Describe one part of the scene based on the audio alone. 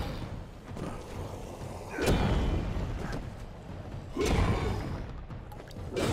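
Magic blasts burst with a whoosh.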